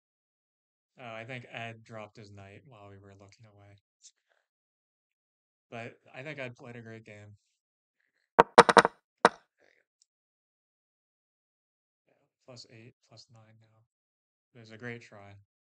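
A young man talks calmly over an online call.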